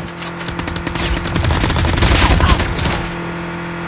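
Bursts of gunfire crack rapidly.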